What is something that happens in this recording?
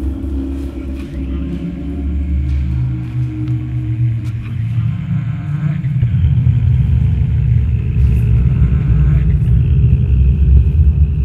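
Feet shuffle and tap on a hard floor.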